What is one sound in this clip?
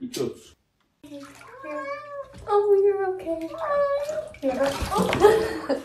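A cat yowls loudly and repeatedly.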